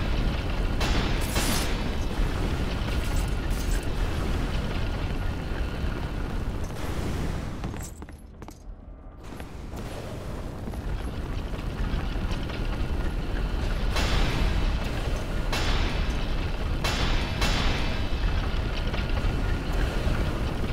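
Jets of fire roar in bursts.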